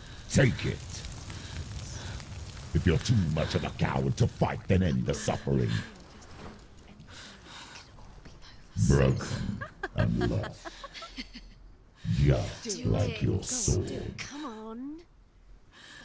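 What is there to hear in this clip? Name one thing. A young woman speaks in a taunting, whispery voice close by.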